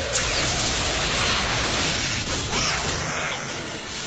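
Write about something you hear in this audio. An explosion roars loudly.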